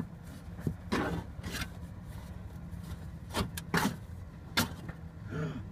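A metal panel clanks and scrapes as it is worked loose by hand.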